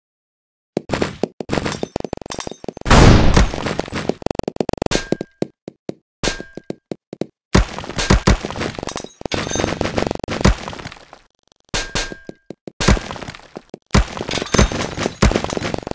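Wooden crates crack and break apart.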